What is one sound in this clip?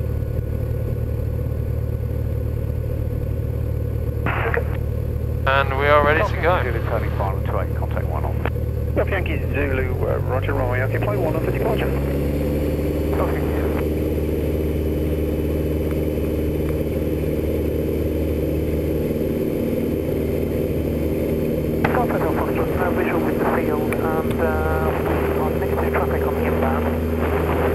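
A small propeller plane engine drones steadily, then revs up to a louder, higher roar.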